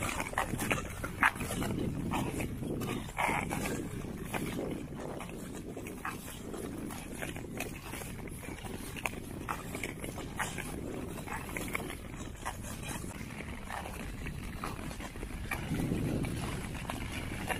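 Ice skates scrape and hiss across smooth ice.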